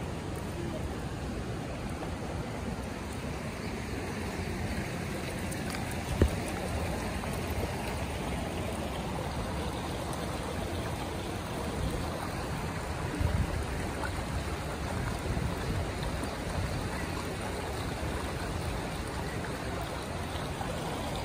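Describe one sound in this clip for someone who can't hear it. A dog's paws patter on stone paving.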